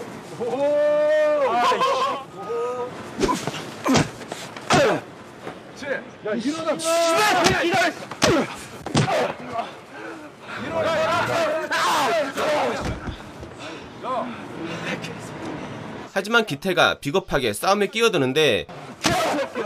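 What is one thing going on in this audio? Punches thud and smack during a scuffle.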